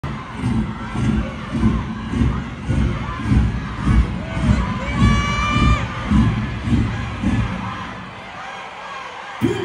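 Live band music plays loudly with a steady thumping beat.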